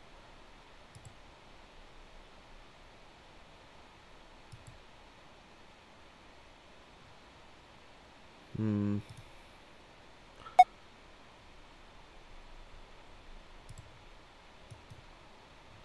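A game interface gives short blips as menus open and close.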